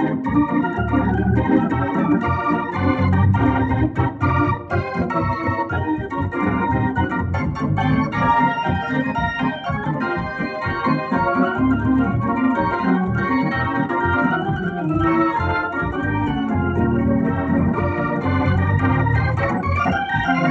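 An organ plays a lively tune with a rich, full sound.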